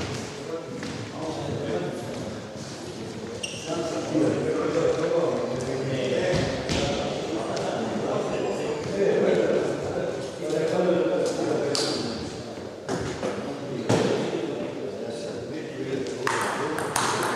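A man talks calmly nearby in an echoing hall.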